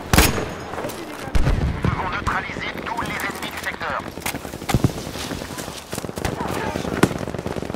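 Footsteps crunch quickly on a dirt path.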